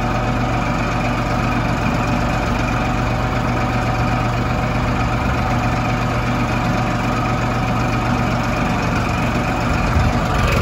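A tractor engine drones steadily close by.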